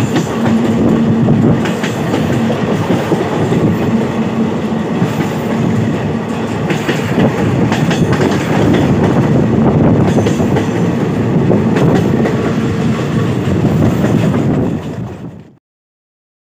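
A train rumbles steadily along the tracks, heard from on board.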